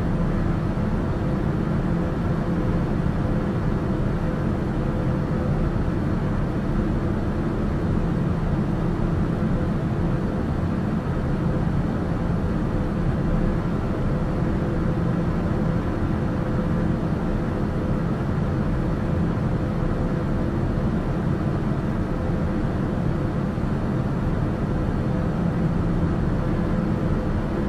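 A small aircraft's engine drones steadily in cruise, heard inside the cockpit.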